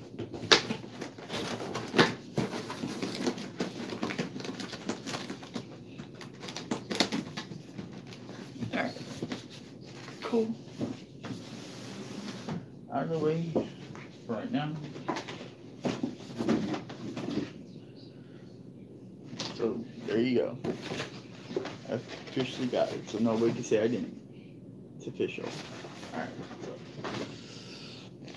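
Cardboard packaging rustles and thumps as a box is handled.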